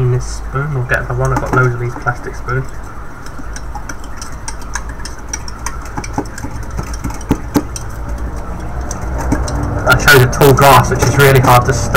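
A glass scrapes and knocks across a metal tray.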